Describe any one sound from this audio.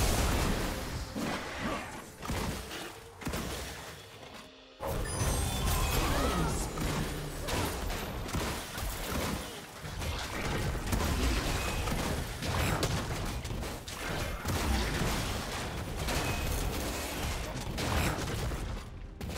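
Game characters clash with repeated hits and impacts.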